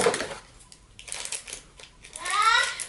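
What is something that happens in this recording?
Scissors snip through plastic packaging.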